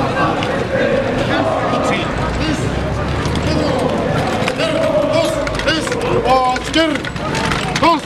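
Boots tramp on pavement as a column marches past.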